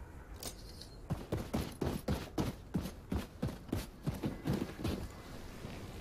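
Quick footsteps thud on the ground.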